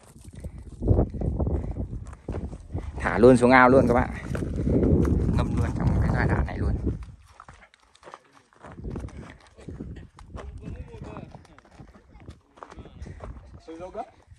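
Footsteps crunch on dry, loose soil and rubble.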